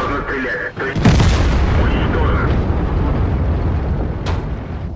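A tank cannon fires with a heavy boom that slowly fades.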